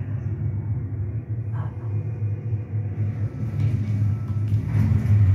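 A low, steady electronic drone hums from a video game.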